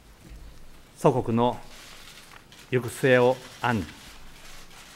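A middle-aged man speaks slowly and formally into a microphone, with long pauses.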